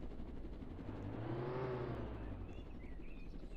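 A car engine revs up and then dies down.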